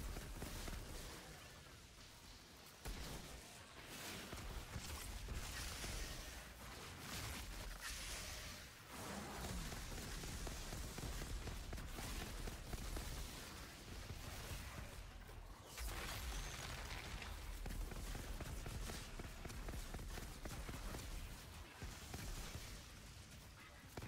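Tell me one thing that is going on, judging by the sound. Monsters roar and screech.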